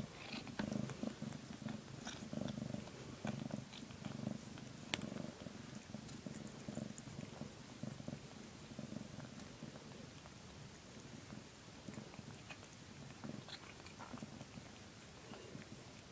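A cat purrs steadily up close.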